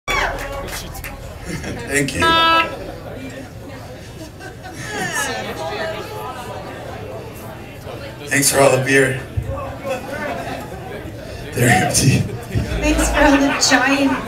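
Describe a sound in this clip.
A man speaks into a microphone, heard over loudspeakers in a room.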